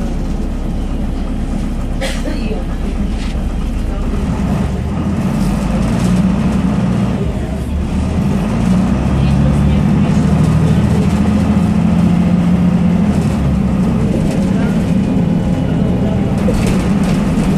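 A bus engine drones and rises in pitch as the bus pulls away.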